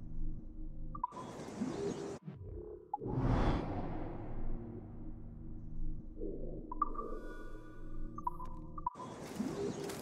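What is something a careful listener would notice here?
Short electronic chimes sound as a menu is clicked through.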